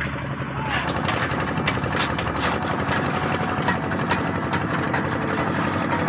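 A concrete mixer churns and rumbles nearby.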